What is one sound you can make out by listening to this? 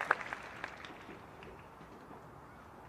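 A crowd claps outdoors, and the applause quickly dies away.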